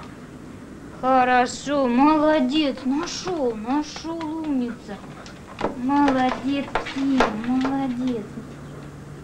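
A woman speaks nearby in a high voice.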